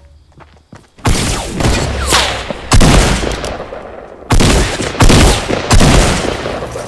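A gun in a video game fires several loud blasts.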